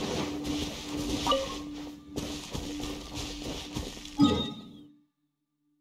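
Footsteps swish quickly through tall grass.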